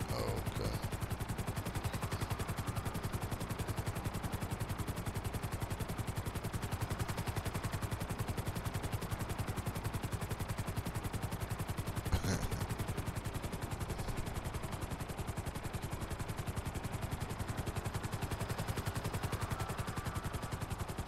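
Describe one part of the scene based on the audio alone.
A helicopter's rotor blades chop rapidly and steadily overhead.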